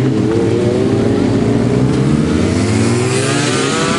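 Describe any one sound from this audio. A motorcycle engine revs up high and fades as a sport bike pulls away.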